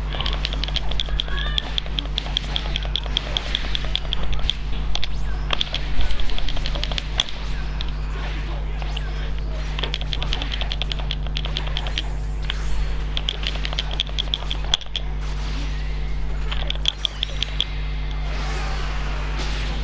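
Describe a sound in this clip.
Fighters trade rapid punches and kicks that thud and smack.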